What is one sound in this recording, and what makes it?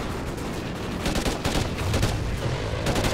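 An assault rifle fires bursts of shots.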